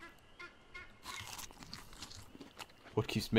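A person chews and eats food with a crunching sound.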